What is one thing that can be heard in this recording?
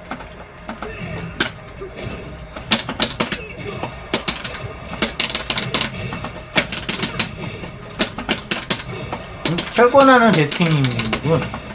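Fighting game punches and kicks land with sharp smacks.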